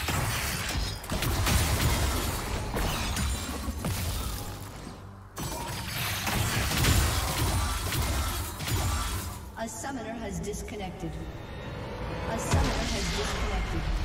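Magic spells crackle and clash in a fast fight.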